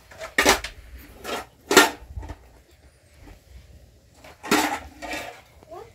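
Dishes and glasses clink on a metal tray.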